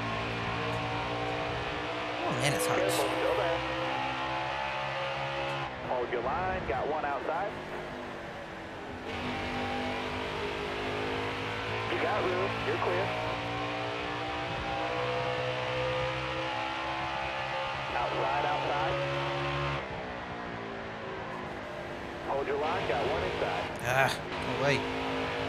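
A racing car engine roars steadily, rising and falling in pitch with gear changes.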